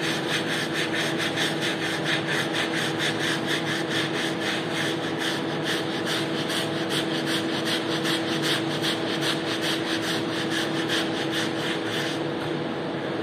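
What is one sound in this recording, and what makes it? A tool scrapes wet suds off a rug in quick, steady strokes.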